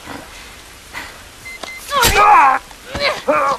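A girl gasps and speaks fearfully.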